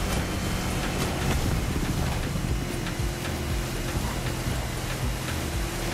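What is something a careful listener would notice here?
A powerboat engine roars steadily at high speed.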